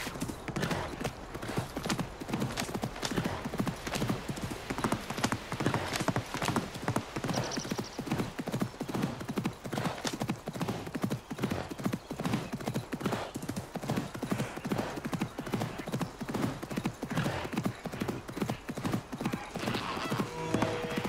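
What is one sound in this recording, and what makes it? Horse hooves gallop at a fast, steady rhythm.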